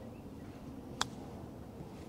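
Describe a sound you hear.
A golf club taps a ball with a light click.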